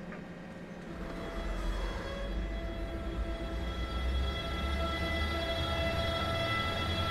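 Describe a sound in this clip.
An electric train's motor whines, rising in pitch as the train pulls away.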